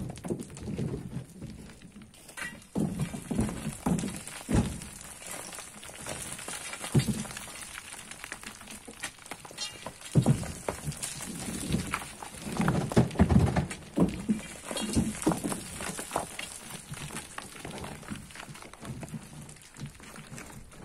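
Loose soil and small stones slide and trickle down a slope.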